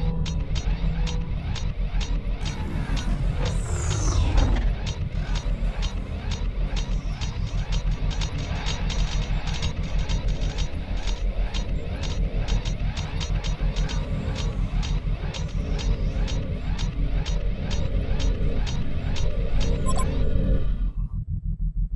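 Heavy metal footsteps clank steadily on a hard floor.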